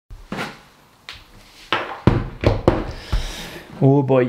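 Thumps and knocks of handling sound close by.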